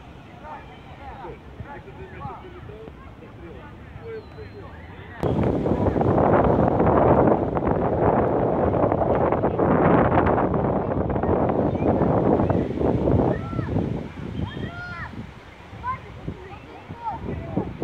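Children shout and call out to each other across an open outdoor field.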